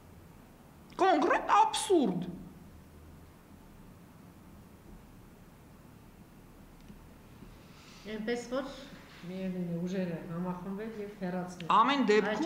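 A woman speaks into a microphone with animation, close by.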